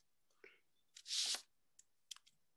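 Paper rustles briefly close by.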